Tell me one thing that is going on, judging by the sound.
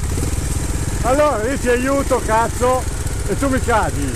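Another dirt bike engine whines and revs sharply nearby.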